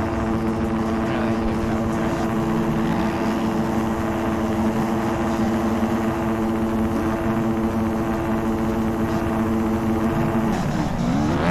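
A motorbike engine idles steadily.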